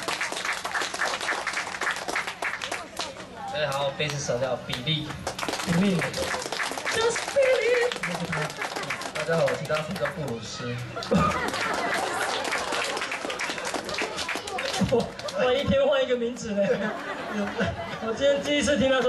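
A band plays electric guitars loudly.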